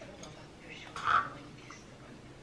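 Chopsticks tap against a ceramic bowl.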